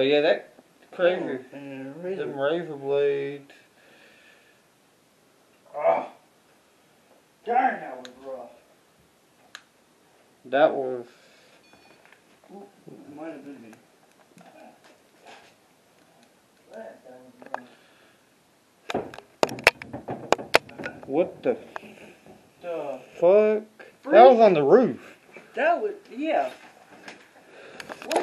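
A man talks in bursts close by.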